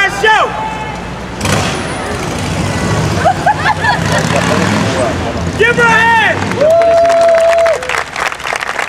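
A man shouts energetically to a crowd outdoors.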